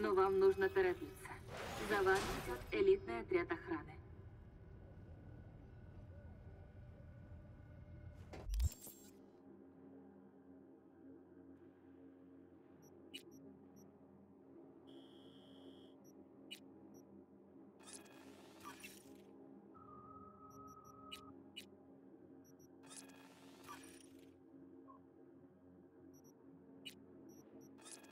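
Low, steady electronic music hums throughout.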